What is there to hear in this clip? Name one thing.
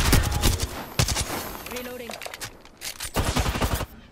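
A rifle's magazine clicks as it is reloaded.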